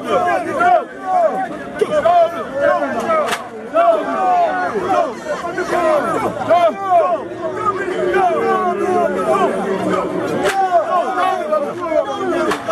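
A crowd of men and women talk and call out over one another outdoors.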